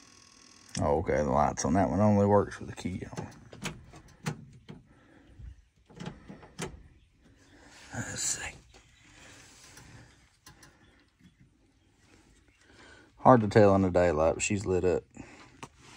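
Wires rustle and tick softly as a hand handles them.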